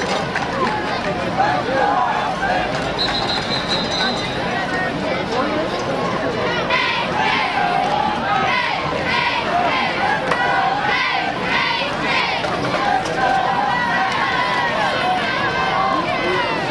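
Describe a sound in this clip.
A crowd cheers and shouts from outdoor stands.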